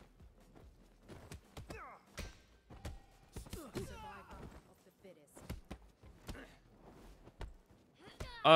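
Punches and kicks thud in quick bursts.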